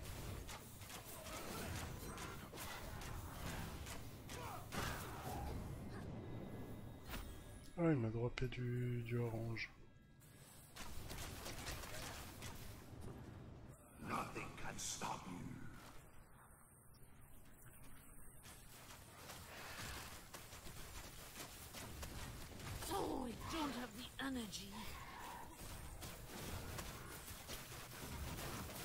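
Fiery spells crackle and burst in quick succession.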